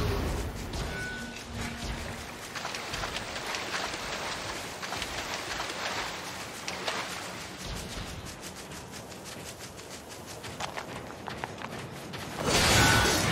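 Footsteps run quickly over ground.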